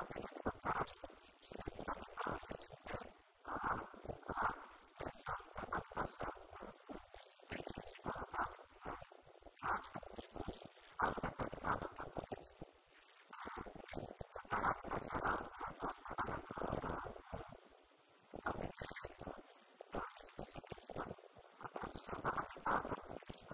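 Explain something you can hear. A man speaks steadily into a microphone, heard through a loudspeaker in a large echoing room.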